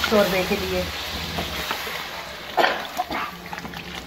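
Water pours into a pot of simmering food.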